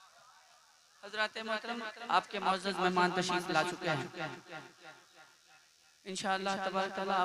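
A man sings loudly into a microphone through loudspeakers.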